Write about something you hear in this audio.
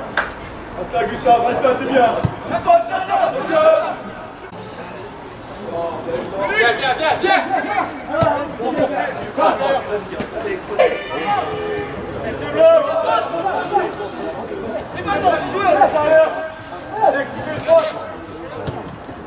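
Men shout and call out to each other across an open pitch outdoors.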